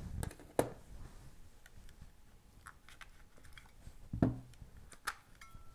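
Batteries click and rattle as they are pulled from a plastic handheld device.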